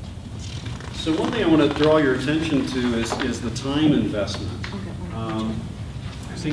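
A man speaks calmly to a group.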